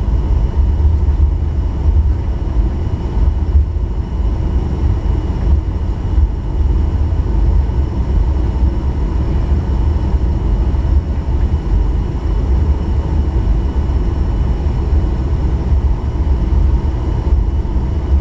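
Jet engines roar steadily inside an airplane cabin as it taxis.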